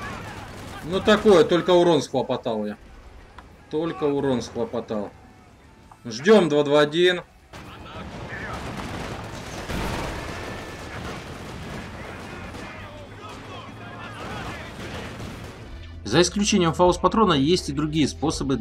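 A young man talks with animation through a close microphone.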